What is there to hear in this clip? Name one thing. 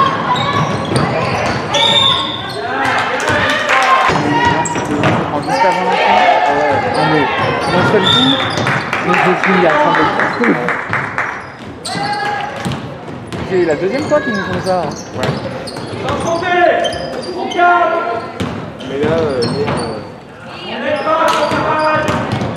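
Young women shout out on the court, echoing in a large hall.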